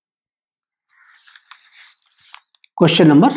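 Paper pages rustle in a man's hands.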